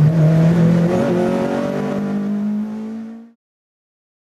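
A race car engine accelerates out of a corner.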